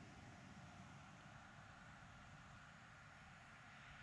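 A putter taps a golf ball.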